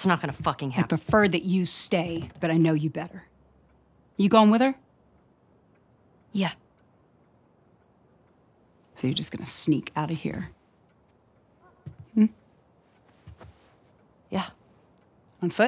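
An adult woman answers calmly and firmly, close by.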